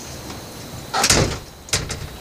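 A door swings shut with a bang.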